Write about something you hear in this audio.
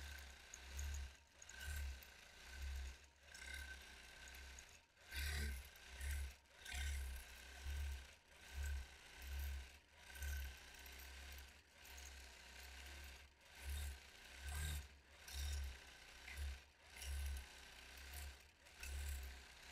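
A quilting machine hums and whirs steadily as it stitches.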